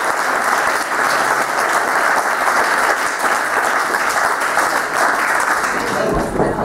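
A crowd claps and applauds in a room.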